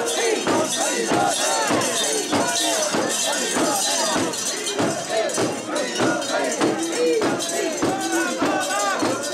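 Bells on a portable shrine jingle as the shrine sways.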